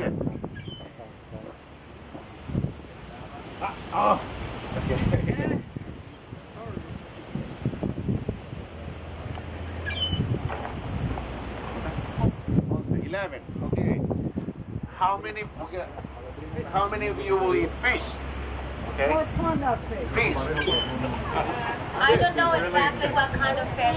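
A crowd of men and women talks and calls out nearby, outdoors.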